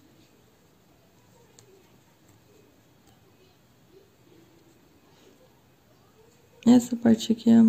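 A crochet hook softly rustles through thread.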